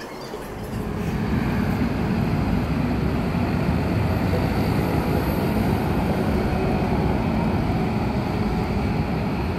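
Street traffic hums steadily outdoors.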